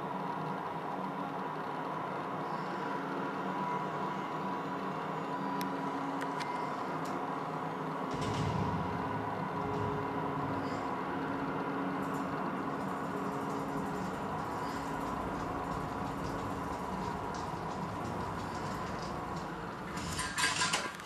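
A game's dramatic music plays through a television's speakers.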